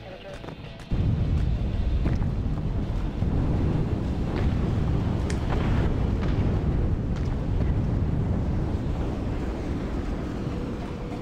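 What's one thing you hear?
Artillery shells explode with a deep, continuous rumble.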